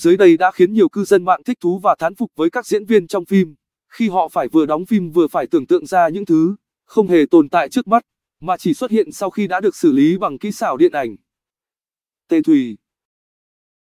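A young man narrates calmly into a microphone.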